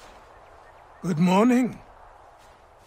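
An elderly man calmly says a short greeting.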